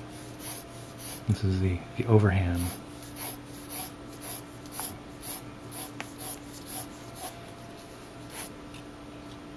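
A pencil scratches across paper in quick, repeated strokes.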